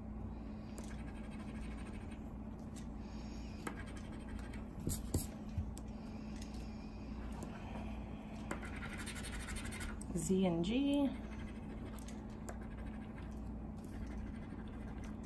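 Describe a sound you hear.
A coin scratches steadily across a card with a dry rasping sound.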